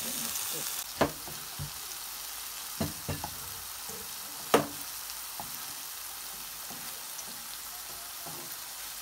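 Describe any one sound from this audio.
A metal spatula scrapes and knocks against a pan.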